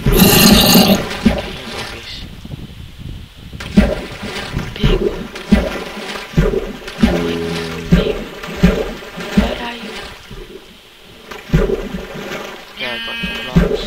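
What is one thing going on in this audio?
Water splashes softly as a figure swims.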